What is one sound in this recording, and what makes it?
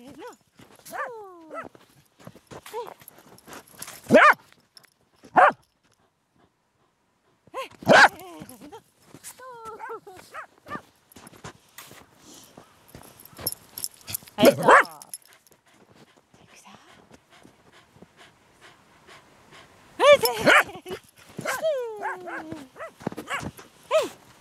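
A dog runs through snow, its paws crunching and thumping.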